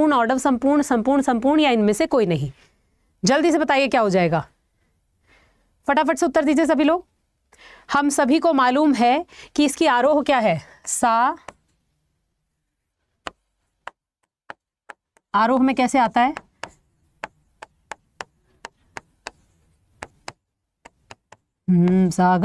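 A young woman speaks clearly and with animation into a close microphone.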